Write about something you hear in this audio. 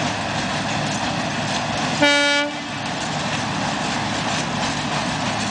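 A steam train rumbles steadily across a bridge in the distance.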